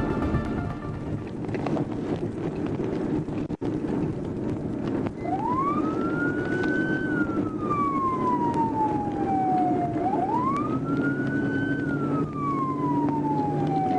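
Tyres and an engine rumble steadily on a fast road.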